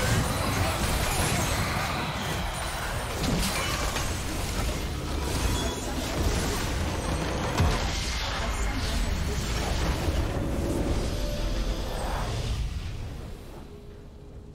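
Video game battle effects whoosh, crash and blast loudly.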